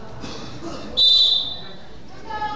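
A referee blows a sharp whistle in a large echoing hall.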